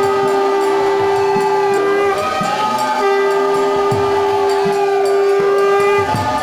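A harmonium plays sustained notes.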